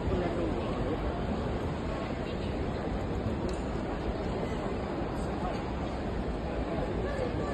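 A crowd murmurs with many overlapping voices in a large echoing hall.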